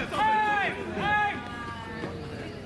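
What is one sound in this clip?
An umpire shouts a call loudly outdoors.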